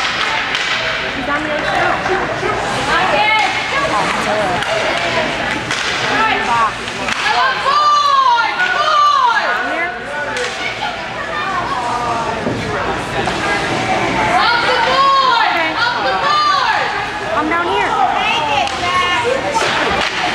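Ice skates scrape and swish across the ice in a large echoing rink.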